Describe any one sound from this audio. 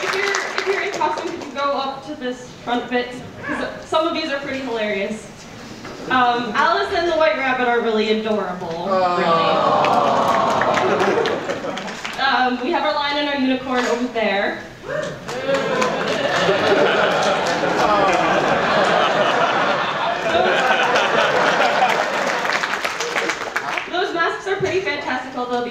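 A group of young men and women sings together loudly.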